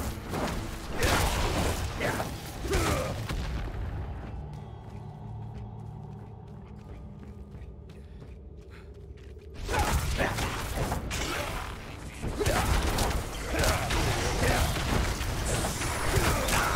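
Fire bursts and roars in a game.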